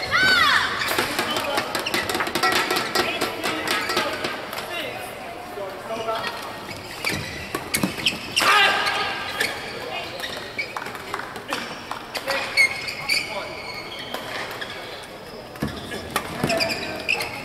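A shuttlecock is struck sharply back and forth with rackets.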